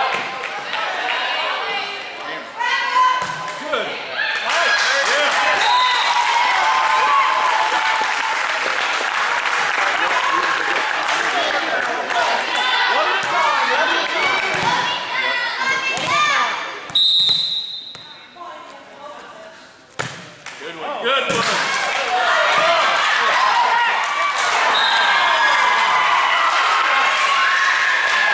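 Young girls shout and cheer loudly in a large echoing gym.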